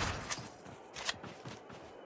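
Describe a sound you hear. A gun is reloaded with quick metallic clicks.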